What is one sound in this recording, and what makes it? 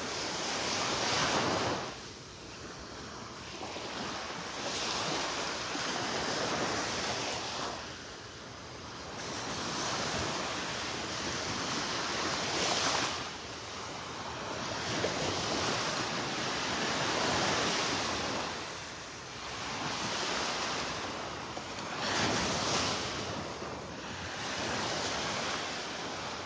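Waves wash onto a shore in slow, rolling swells, outdoors.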